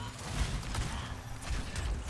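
Laser gunfire crackles in short bursts.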